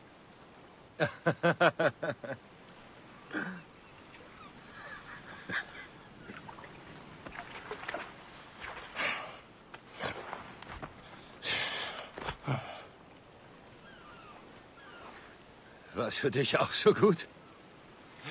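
A man speaks hoarsely and weakly, close by.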